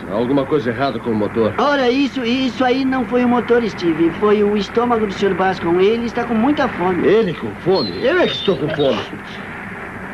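A young man talks cheerfully and close by.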